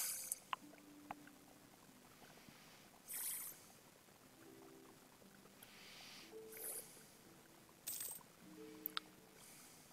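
Short soft interface tones chime now and then.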